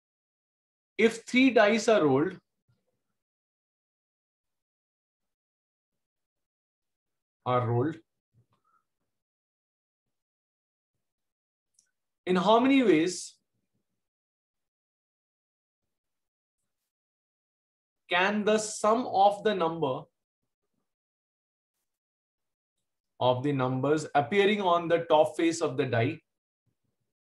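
A man speaks calmly and slowly through a microphone, in short phrases with long pauses.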